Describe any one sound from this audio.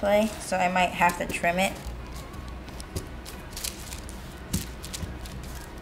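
Paper rustles and crinkles under small hands.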